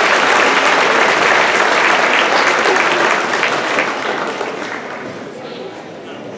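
An audience applauds loudly in a large hall, then the applause fades.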